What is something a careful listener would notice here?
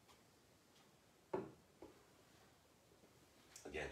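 A man sets a bottle down on a wooden box.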